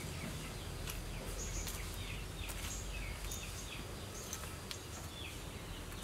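Metal tongs clink against a grill grate.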